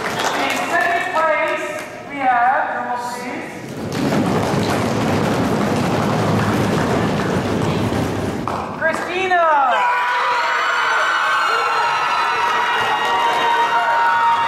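A young woman calls out loudly in a large echoing gym.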